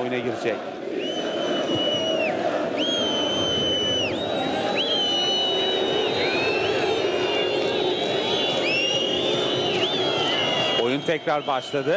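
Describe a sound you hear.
Fans in a stadium crowd whistle shrilly.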